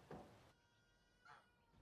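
Footsteps thud on a wooden footbridge.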